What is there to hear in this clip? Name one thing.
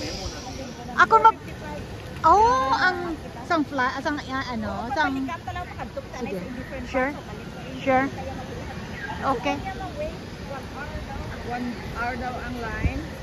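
A crowd of men and women chatter nearby, outdoors.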